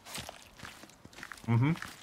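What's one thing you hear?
A knife slices wetly into an animal's hide.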